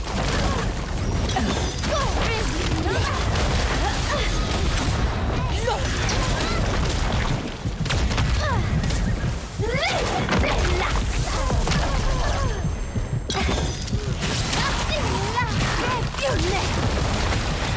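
Fiery explosions boom.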